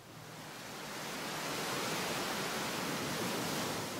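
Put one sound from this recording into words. Waves crash and churn against rocks.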